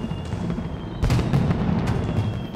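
Fireworks burst with sharp bangs.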